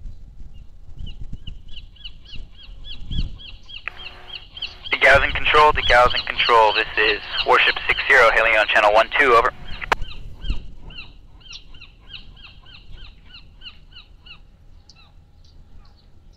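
Gulls call over the water.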